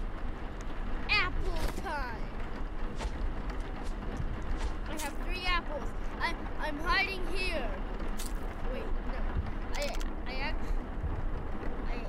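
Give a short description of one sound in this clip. A young boy talks excitedly into a microphone.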